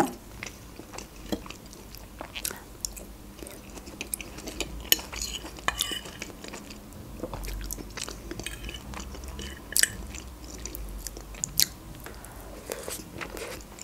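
A young woman chews food wetly and close up.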